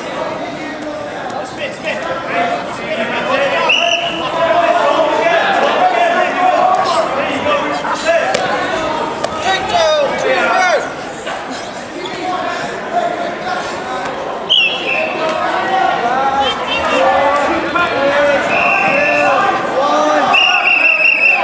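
Wrestlers thump and scuffle on a mat.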